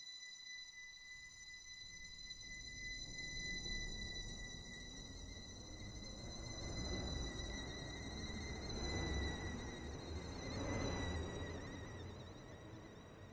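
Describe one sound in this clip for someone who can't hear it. An electric train pulls away with a whine and a low rumble.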